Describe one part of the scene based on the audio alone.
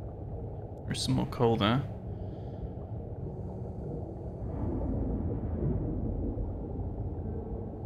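A small underwater drone hums with a low, steady rumble.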